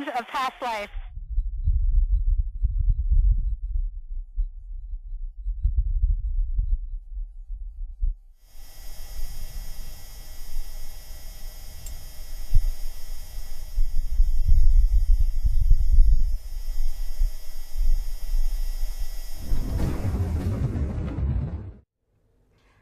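Wind rumbles and crackles faintly through a microphone.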